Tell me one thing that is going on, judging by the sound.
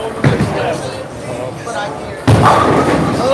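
A bowling ball rolls down a lane with a low rumble.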